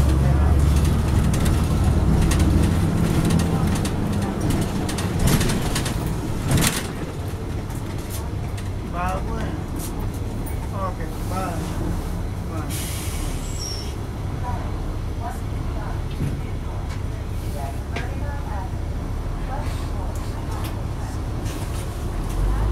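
A bus engine rumbles low and steady, louder at first and then settling to an idle.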